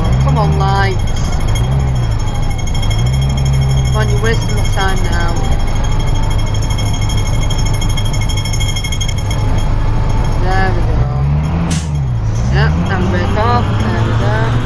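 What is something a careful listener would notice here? A bus engine drones and revs up and down as the bus drives.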